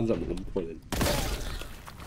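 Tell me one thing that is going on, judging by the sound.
A gun fires loud blasts.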